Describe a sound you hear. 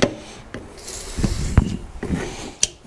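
An aerosol can sprays with a short hiss.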